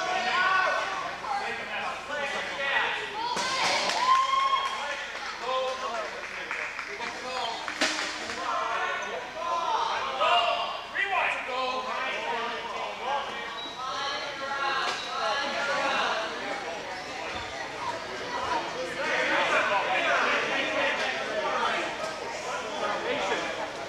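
People talk and call out nearby in a large, echoing gym.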